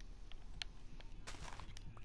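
Soft thuds of blocks being struck in a video game.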